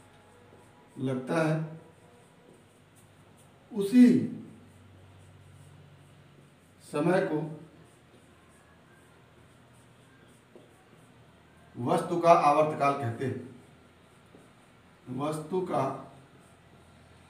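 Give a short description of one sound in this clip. A man speaks calmly in short phrases, with pauses between them.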